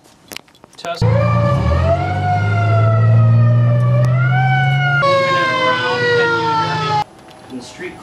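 A handheld radio sounds a loud, rising and falling electronic alarm.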